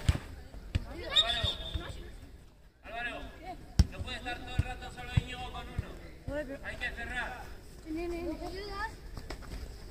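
Young boys shout and call out to each other outdoors.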